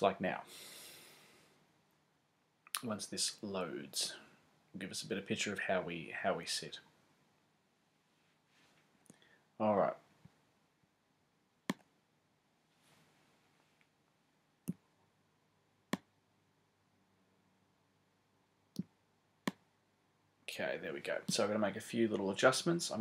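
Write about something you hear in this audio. A man talks calmly and close to a microphone, in bursts with pauses.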